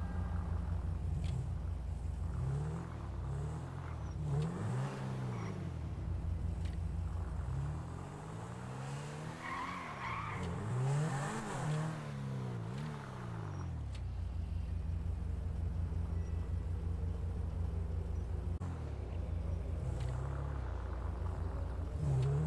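A sports car engine idles and revs up and down.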